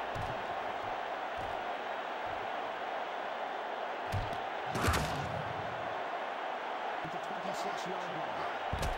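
A large stadium crowd roars steadily.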